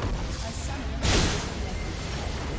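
A loud explosion booms in a video game.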